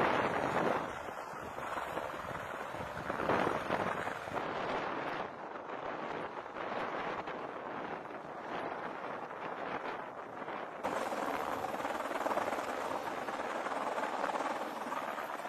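Helicopter rotors thump loudly overhead.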